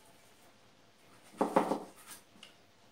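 A brush dabs paint onto a canvas.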